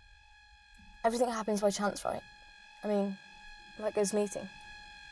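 A woman speaks with excitement nearby.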